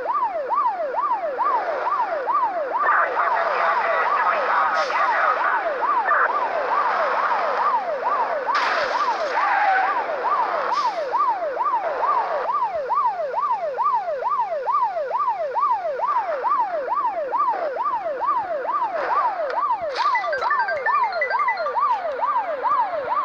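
A police siren wails, rising and falling quickly.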